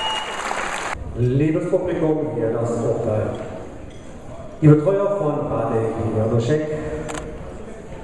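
A man announces over a loudspeaker in a large echoing hall.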